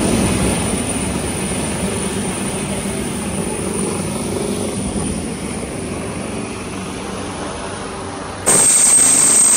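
A helicopter's rotor thuds loudly overhead.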